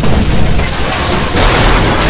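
Heavy gunfire rattles.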